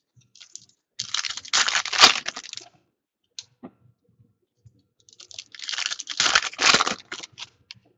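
Plastic wrappers crinkle and rustle as hands tear open card packs.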